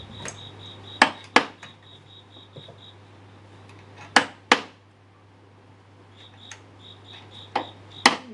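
A hammer taps sharply on a chisel.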